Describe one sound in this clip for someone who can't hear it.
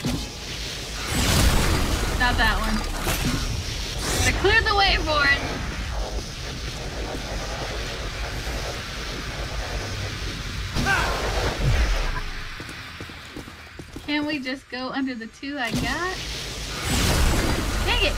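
Blasts of an energy weapon crackle and boom.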